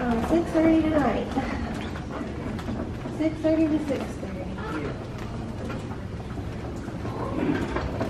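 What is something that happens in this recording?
Stretcher wheels roll and rattle over a hard floor.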